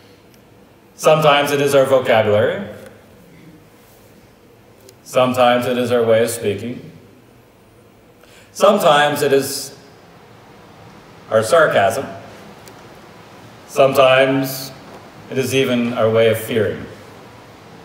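An elderly man speaks slowly and calmly through a microphone, in phrases with pauses, in a room with some echo.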